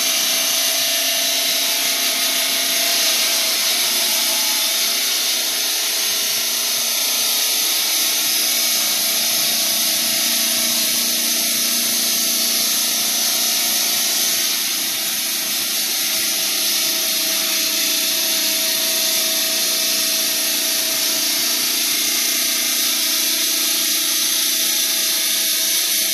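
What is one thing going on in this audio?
A stone saw grinds loudly and steadily through rock.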